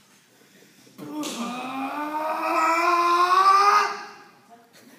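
A man lets out a long, drawn-out rising cry.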